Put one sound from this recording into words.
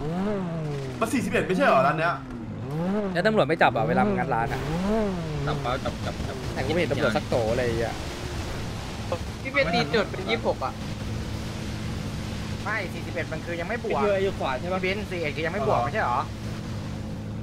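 A young man talks with animation through a microphone, close by.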